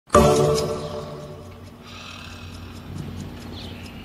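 A man snores loudly nearby.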